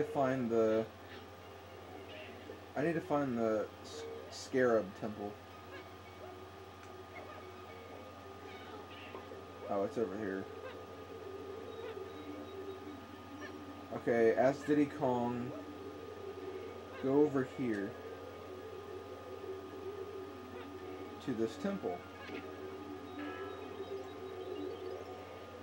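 Video game music plays quietly through a television speaker.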